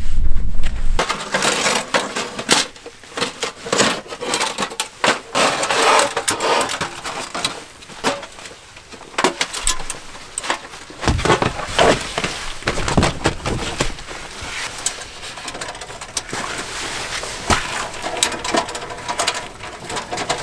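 Metal plates of a small stove clank and rattle as they are fitted together.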